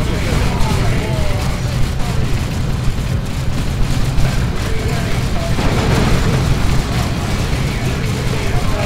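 Gunfire crackles rapidly in a chaotic battle.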